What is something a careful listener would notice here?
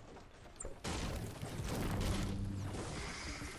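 A pickaxe thuds against a tree trunk.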